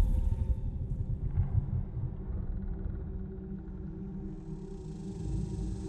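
Loud music with a deep booming bass plays through large speakers in a big hall.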